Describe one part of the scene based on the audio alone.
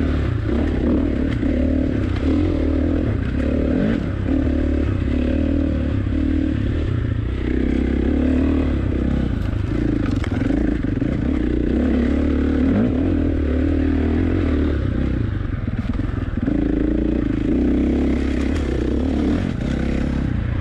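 A dirt bike engine revs and roars up close, rising and falling with the throttle.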